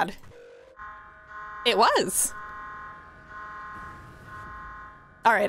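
An alarm tone hums steadily.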